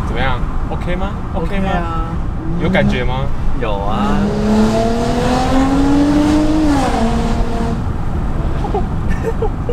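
A car engine hums low and steady inside the cabin.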